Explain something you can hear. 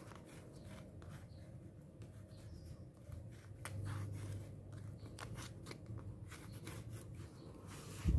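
Paper rustles and crinkles as hands handle a sheet.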